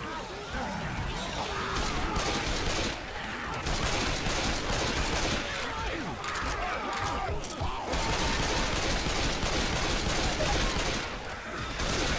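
Pistols fire in quick, sharp bursts.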